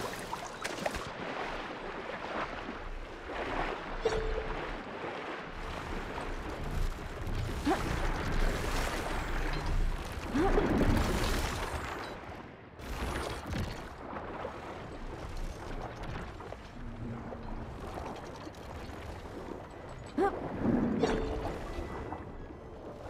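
Muffled underwater swooshing surrounds a diving swimmer.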